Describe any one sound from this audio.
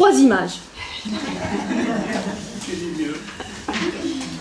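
A middle-aged woman laughs.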